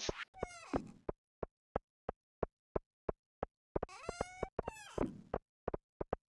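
Footsteps tap at a steady walking pace on a hard path.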